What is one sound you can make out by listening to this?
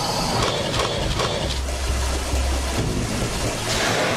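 A crocodile splashes up out of the water.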